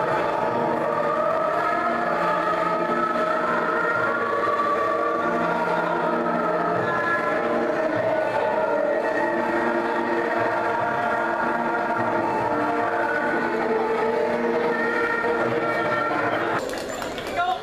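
A group of women sings together.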